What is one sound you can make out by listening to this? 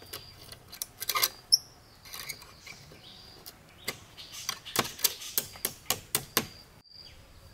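A knife taps and knocks against bamboo in quick strikes.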